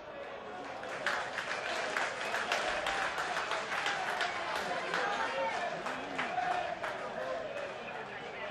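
A stadium crowd cheers and claps after a goal.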